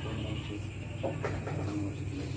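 Billiard balls clack together on a table.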